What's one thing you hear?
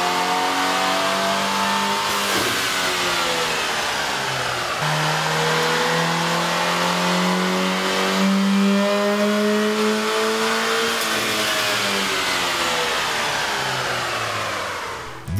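A car engine revs hard, its pitch climbing, dropping, then climbing again.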